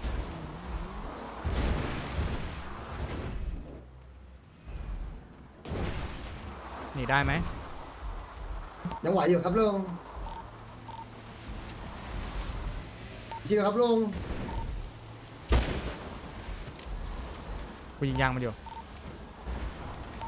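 Tyres crunch and skid over dirt and grass.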